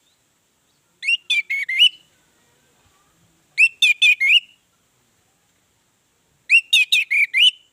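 An orange-headed thrush sings short bursts of whistled phrases.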